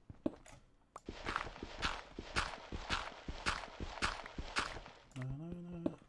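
A pickaxe chips at stone in quick, regular knocks.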